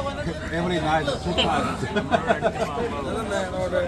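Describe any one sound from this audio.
An older man laughs.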